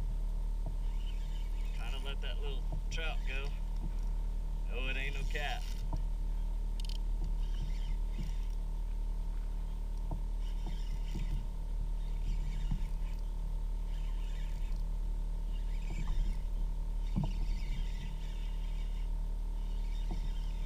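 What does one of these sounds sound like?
A fishing reel whirs as it is wound in.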